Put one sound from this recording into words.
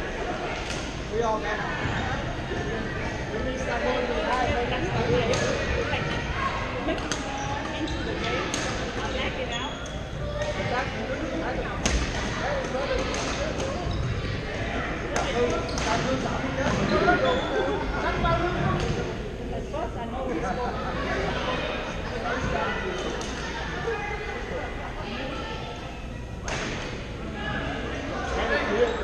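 Many people talk and call out at a distance, echoing in the hall.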